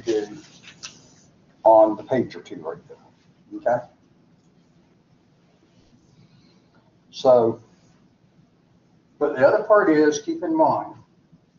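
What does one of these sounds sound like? An elderly man speaks calmly, pausing between phrases.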